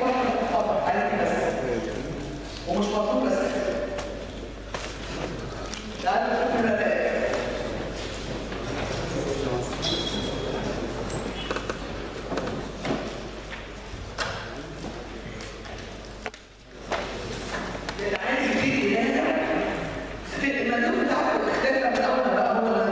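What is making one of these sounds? An older woman lectures calmly through a handheld microphone in an echoing room.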